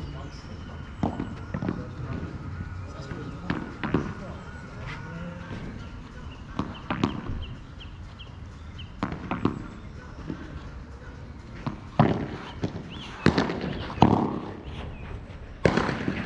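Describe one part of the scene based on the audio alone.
Padel rackets strike a ball with sharp pops, outdoors.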